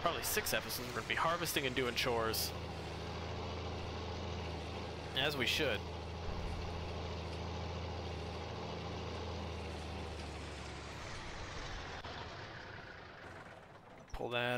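A tractor engine idles with a steady low rumble and slowly fades away.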